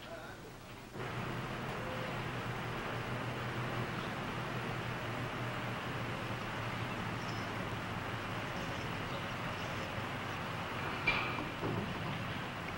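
A heavy truck engine idles steadily outdoors.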